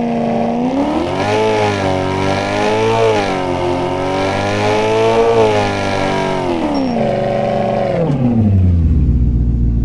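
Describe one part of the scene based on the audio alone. A car engine roars, its pitch rising and falling as it speeds up and shifts gears.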